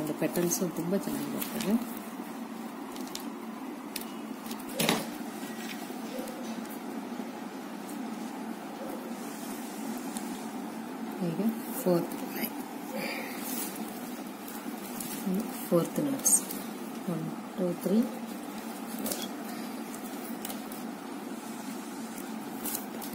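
Stiff plastic cords rustle and click.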